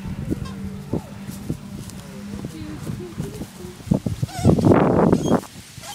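Plastic toy wheels rattle over grass.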